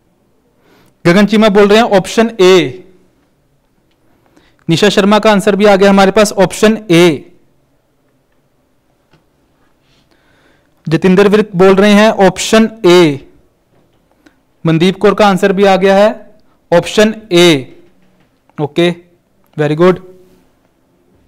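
A man speaks calmly into a clip-on microphone, in short phrases with pauses.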